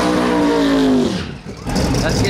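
A race car engine roars loudly.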